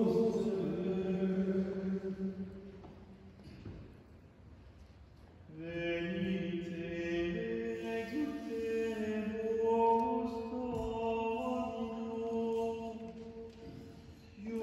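Men sing a slow chant together in a reverberant hall.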